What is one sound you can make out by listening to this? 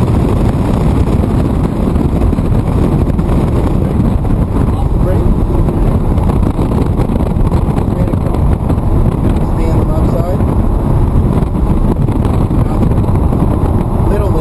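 A sports car engine roars loudly from inside the cabin.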